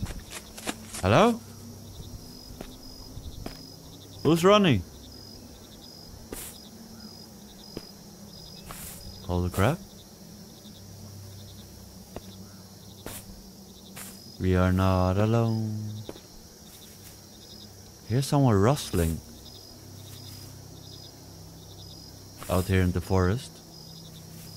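A man speaks in short, animated bursts close to a microphone.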